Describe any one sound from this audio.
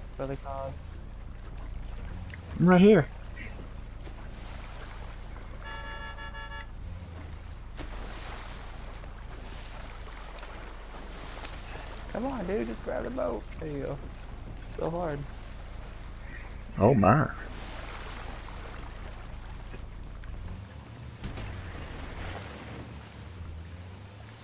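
A motorboat engine hums steadily.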